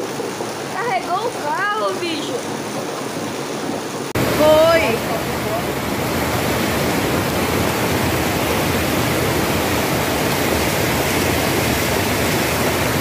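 Heavy rain pours outdoors.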